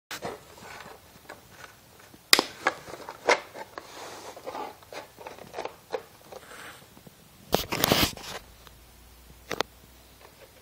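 Knocks and thumps sound as a wooden box is handled.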